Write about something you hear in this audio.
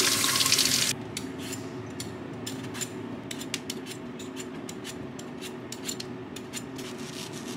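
A peeler scrapes the skin of a mango.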